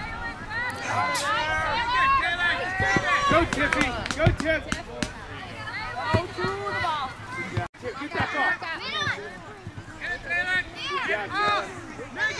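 A soccer ball is kicked with dull thumps.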